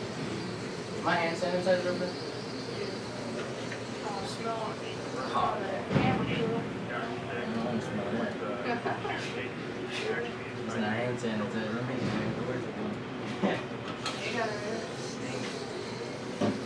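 A young man talks quietly nearby.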